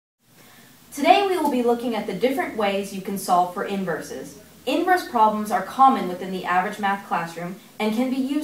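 A young woman reads aloud calmly, close by.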